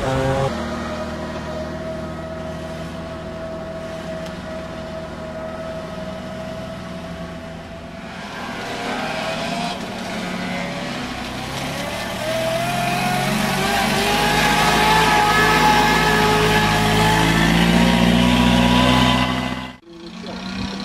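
A vintage four-cylinder car engine chugs as the car pulls away.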